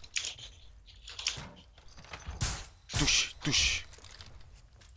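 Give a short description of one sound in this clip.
Wooden boards crack and splinter as a barricade is struck.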